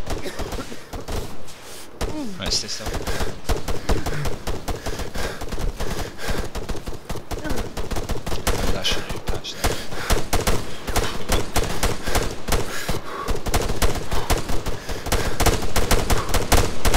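A rifle fires rapid bursts of loud gunshots outdoors.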